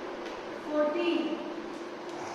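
A young girl recites aloud close by.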